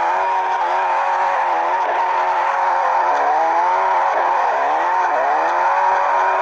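Tyres squeal as a car drifts around a bend.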